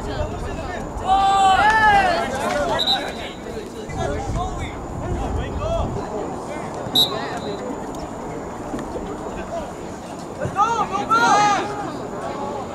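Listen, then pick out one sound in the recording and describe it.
Young men shout loudly across a field.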